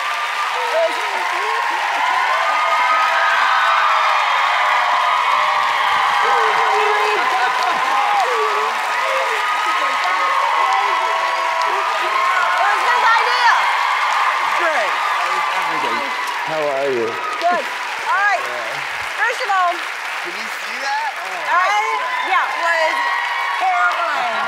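A studio audience cheers and screams loudly.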